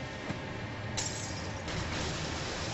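A glass bottle shatters.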